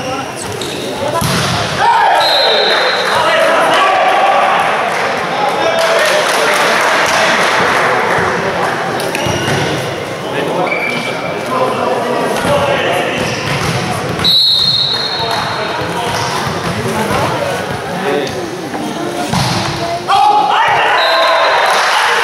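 A volleyball is struck hard with a loud smack.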